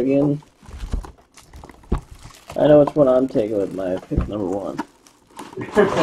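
A cardboard box rustles and scrapes as hands handle it.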